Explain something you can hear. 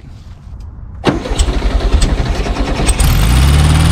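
A car engine cranks over and starts.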